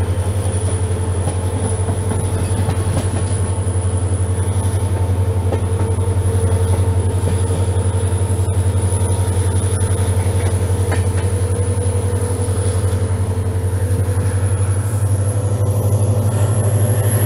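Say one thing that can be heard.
A diesel locomotive engine drones loudly and steadily close by.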